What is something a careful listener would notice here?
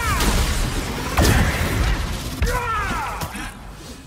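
Electric blasts crackle and zap.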